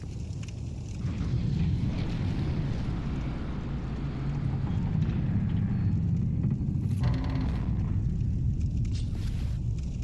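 A heavy stone door grinds slowly open.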